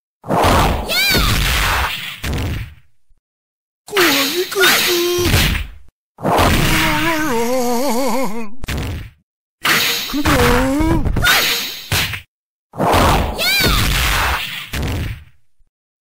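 A heavy body slams down onto the ground.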